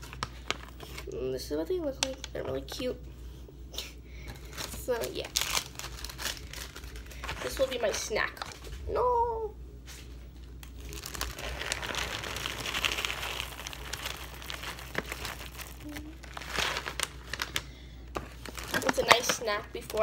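A plastic snack bag crinkles and rustles.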